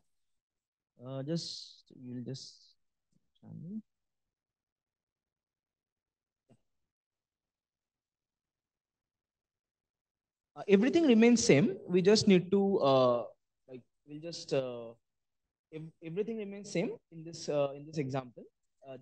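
A man talks calmly into a microphone, pausing now and then.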